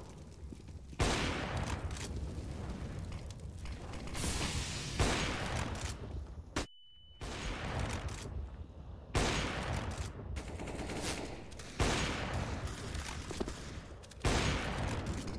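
A sniper rifle fires loud, echoing shots.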